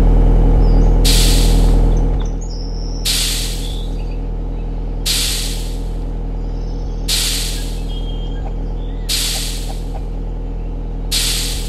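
Bags of sawdust drop out with a soft whooshing thud.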